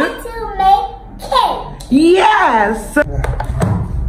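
A young girl speaks excitedly close by.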